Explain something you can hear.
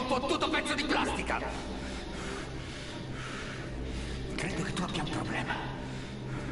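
A middle-aged man speaks in a low, menacing voice.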